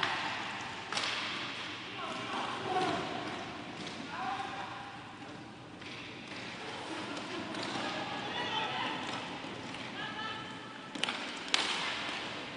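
Hockey sticks clack sharply against a ball in a large echoing hall.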